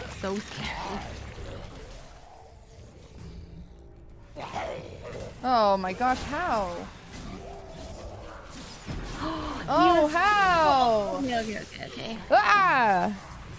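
Game spell effects whoosh and clash.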